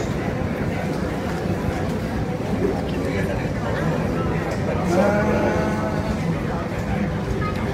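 A panda chews and tears at a cardboard box.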